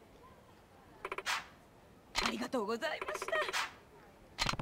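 A young woman speaks warmly and gratefully.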